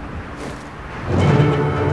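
A short triumphant fanfare plays.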